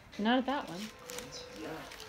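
Paper wrapping rustles as it is handled.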